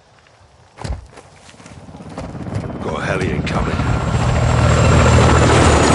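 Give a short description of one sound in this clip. Footsteps crunch quickly on loose gravel.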